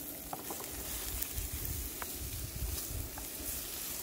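Chopped food slides off a wooden board into a sizzling pan.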